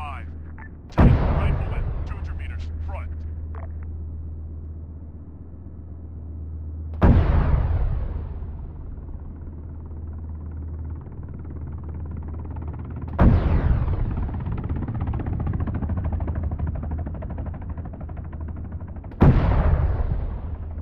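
A heavy cannon fires with loud booming blasts that echo and roll away.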